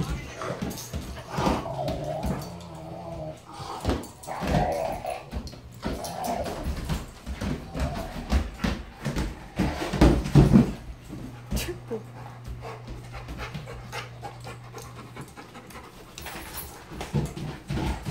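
Dog paws scrabble and tap on a wooden floor.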